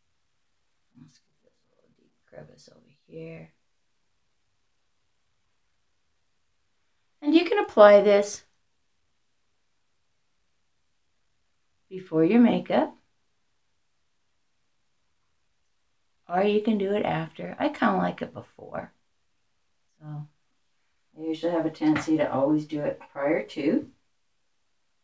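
An older woman speaks calmly and close by, in short phrases with pauses.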